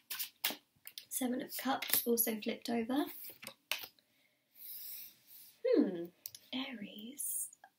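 A card slides and taps onto a wooden table.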